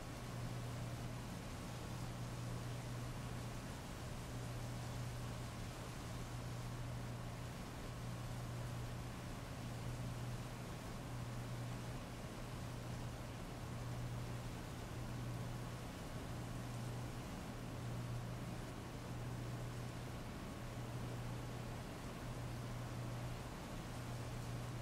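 Heavy rain pours steadily onto a wet street outdoors.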